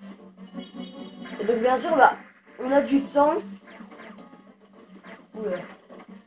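A video game's laser beams zap and blast.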